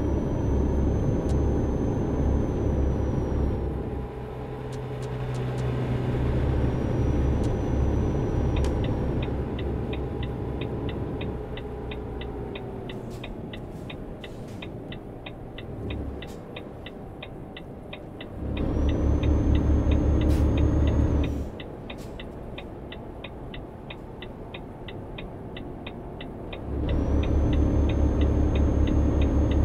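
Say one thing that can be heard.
A diesel truck engine drones from inside the cab while cruising on a highway.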